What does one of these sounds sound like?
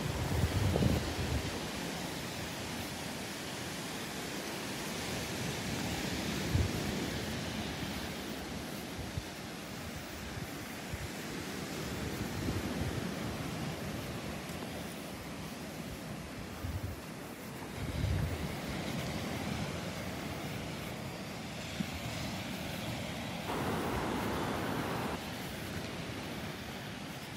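Wind gusts across the microphone outdoors.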